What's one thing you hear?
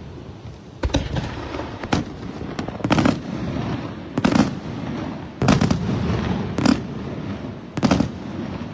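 Fireworks crackle and sizzle after each burst.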